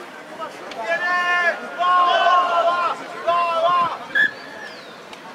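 A referee's whistle blows sharply several times.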